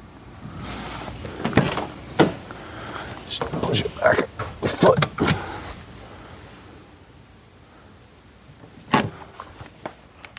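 Metal tools clank and click against a car wheel.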